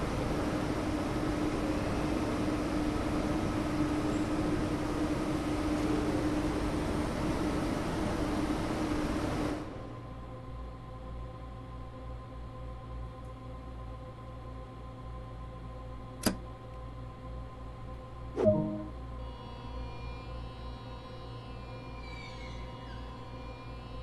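A high-speed electric train hums while standing at a platform.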